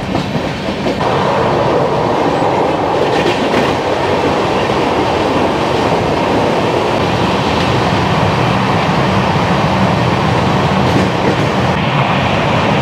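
A train roars loudly through an echoing tunnel.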